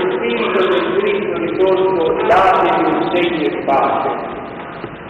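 A group of people sing together in an echoing room.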